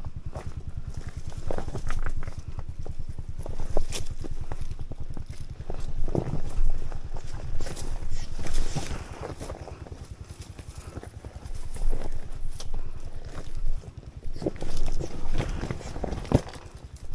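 A dirt bike engine putters at low revs close by.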